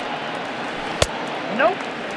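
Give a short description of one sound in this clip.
A baseball smacks into a catcher's mitt.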